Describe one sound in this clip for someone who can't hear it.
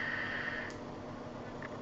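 A man exhales vapour with a soft hiss.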